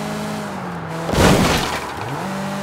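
A car crashes loudly into something, scattering debris.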